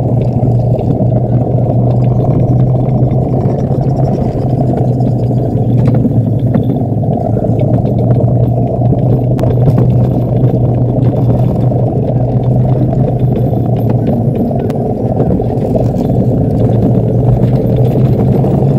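A small cart rumbles steadily as it rolls down a concrete track.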